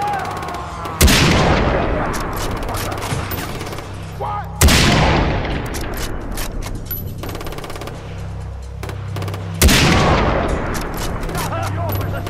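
A rifle fires loud shots that boom and echo away.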